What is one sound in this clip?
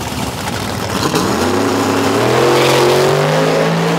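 A V8 drag car launches hard and accelerates down the strip.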